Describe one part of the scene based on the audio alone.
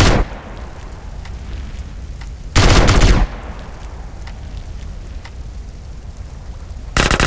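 A flamethrower roars in loud bursts.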